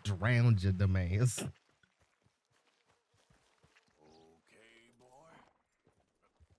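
A man speaks loudly into a close microphone.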